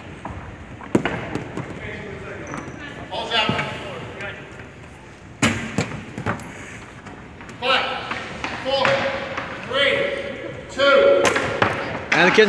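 Hockey sticks clack against the floor and ball.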